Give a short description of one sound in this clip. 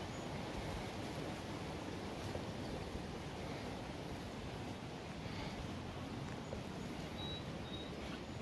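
Footsteps crunch on a rocky dirt trail.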